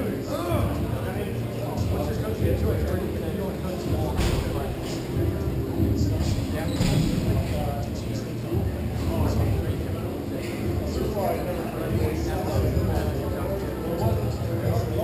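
Skate wheels rumble across a hard floor in a large echoing hall.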